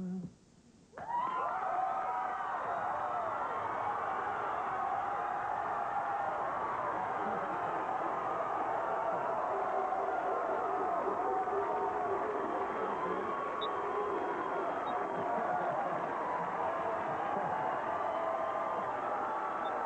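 A large audience cheers and applauds loudly.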